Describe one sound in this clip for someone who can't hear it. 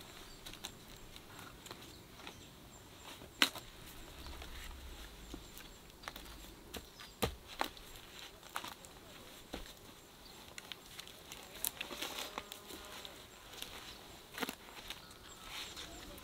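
Branches knock and creak under a climber's weight.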